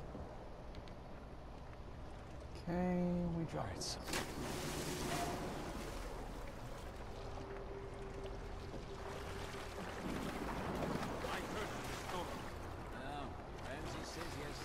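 Water churns and splashes steadily.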